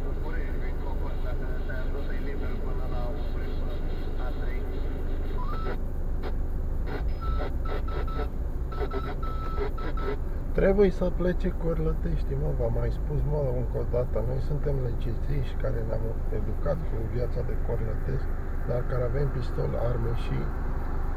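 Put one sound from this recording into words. A car engine idles with a low, steady hum.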